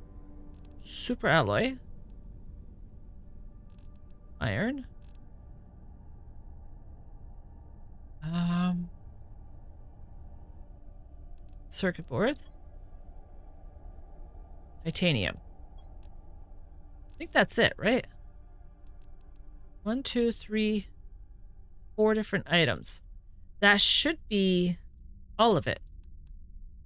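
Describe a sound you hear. Short swooshing electronic interface sounds play now and then.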